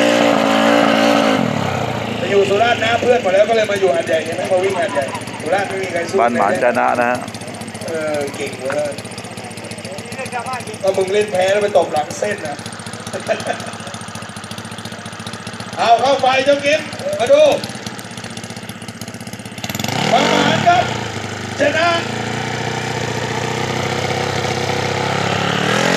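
A motorcycle engine revs loudly up close.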